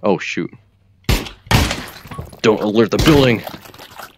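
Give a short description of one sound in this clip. A gun fires loud shots at close range.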